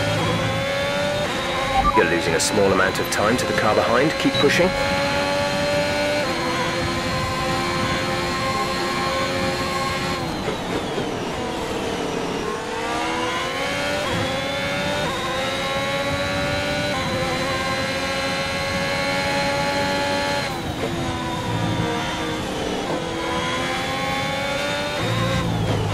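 A racing car engine screams at high revs, dropping in pitch when braking and climbing again.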